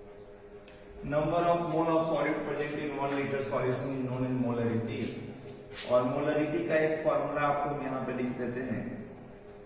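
A man speaks calmly and clearly, as if explaining.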